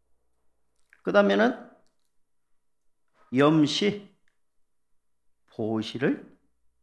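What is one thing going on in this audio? A middle-aged man speaks calmly in short phrases into a microphone, with pauses between them.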